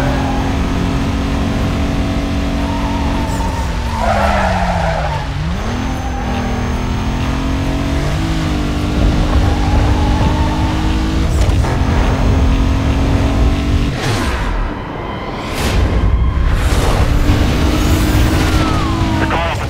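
A race car engine roars at high revs, its pitch dropping and climbing as it shifts gears.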